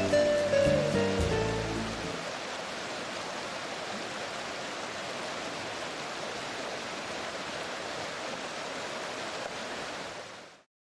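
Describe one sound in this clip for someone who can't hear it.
River water rushes and churns steadily.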